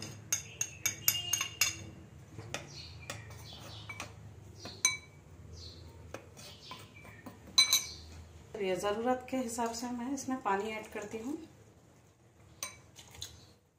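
A spoon scrapes softly while stirring powder in a glass bowl.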